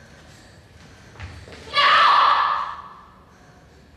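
Footsteps tap on a hard floor in an echoing hallway.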